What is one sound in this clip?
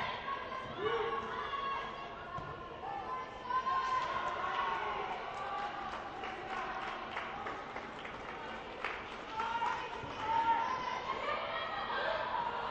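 Young women shout and call out to each other across a large echoing hall.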